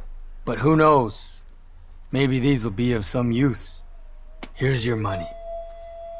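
A young man speaks quietly and gravely close by.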